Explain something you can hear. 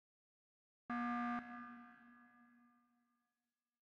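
A loud electronic alarm tone blares and fades.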